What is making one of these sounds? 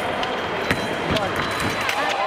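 Fencing blades clash with sharp metallic clicks.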